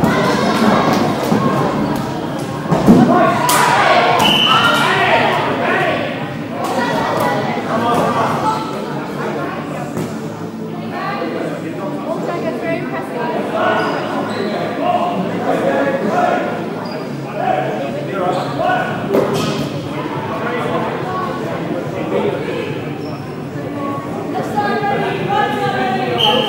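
Young women and girls call out and chatter during play.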